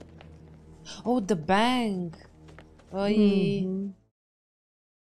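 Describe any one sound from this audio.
A woman speaks with animation into a microphone, close by.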